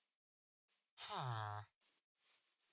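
A villager grunts a short nasal hum.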